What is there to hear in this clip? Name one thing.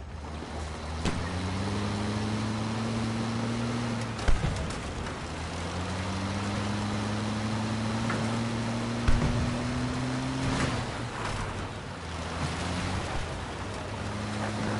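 An armoured vehicle's engine roars and rises in pitch as it drives.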